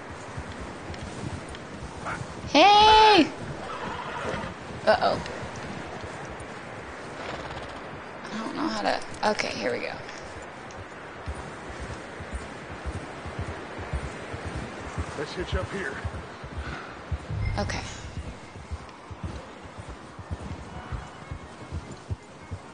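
A horse gallops with muffled hoofbeats on snow.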